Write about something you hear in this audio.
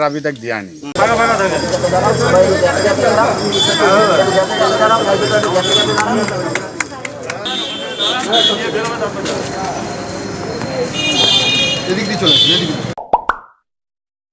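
A crowd of people talk over each other nearby.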